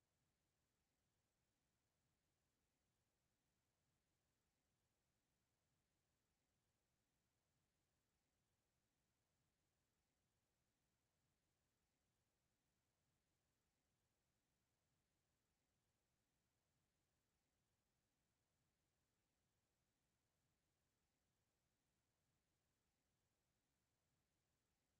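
A clock ticks steadily and quietly.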